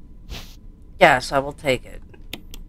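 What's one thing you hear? A young woman speaks briefly and expressively into a microphone.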